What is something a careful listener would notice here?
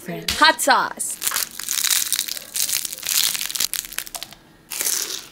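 A crispy fried roll crackles and crunches as it is broken open.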